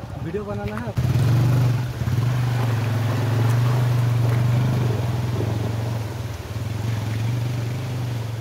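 A motorcycle engine runs steadily nearby.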